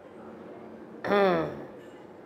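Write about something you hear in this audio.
A young woman clears her throat.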